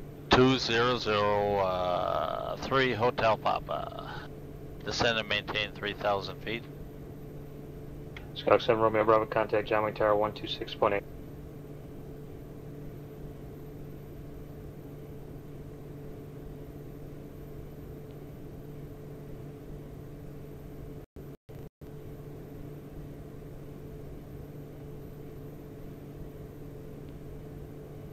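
Aircraft engines drone steadily.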